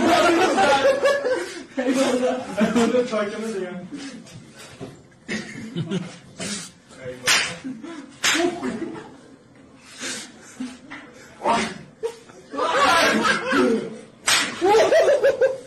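Several men talk and laugh together close by.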